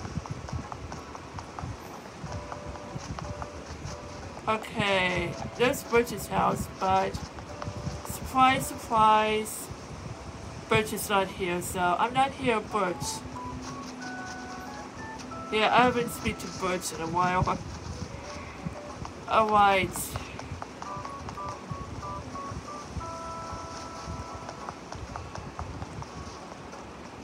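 A handheld game plays a soft, plinking tune through its small speaker.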